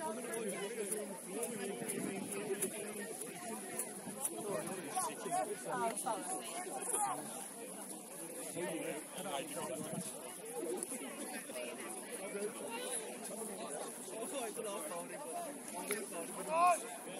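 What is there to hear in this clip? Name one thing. Young players shout and call to each other across an open field outdoors.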